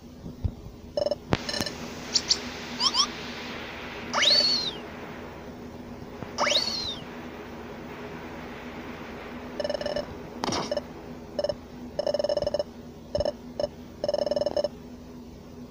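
Short electronic beeps chirp in quick bursts, like game text blips.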